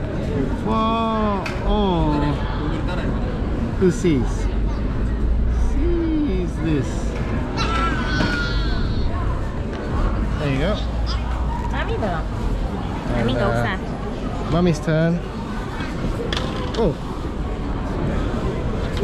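A crowd of young people chatter and call out nearby.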